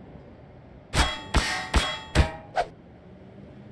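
A metal bar strikes a creature with loud, sharp thuds.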